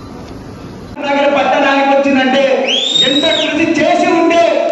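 A man speaks loudly into a microphone through loudspeakers.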